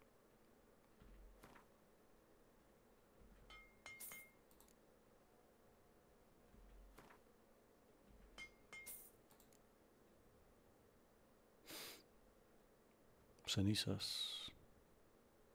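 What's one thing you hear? Short menu clicks and chimes sound now and then.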